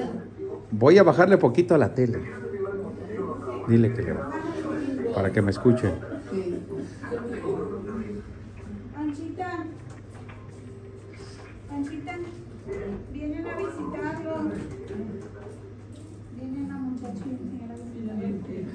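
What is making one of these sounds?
A woman talks with animation nearby.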